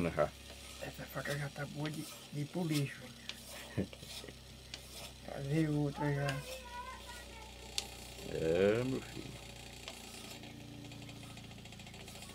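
A small metal blade scrapes against a sharpening stone.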